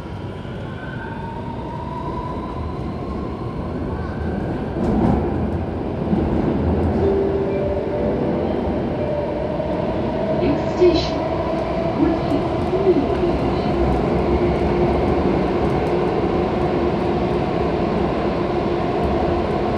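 A subway train hums and rumbles steadily along the track, with rising motor whine.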